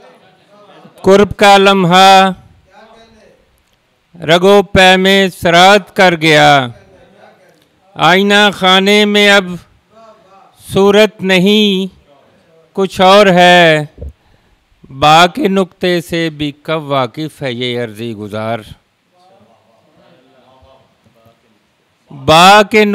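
A man speaks loudly and with emphasis into a microphone, close and amplified.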